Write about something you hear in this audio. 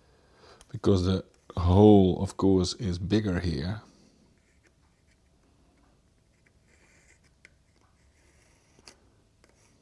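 A pencil scratches lightly across wood.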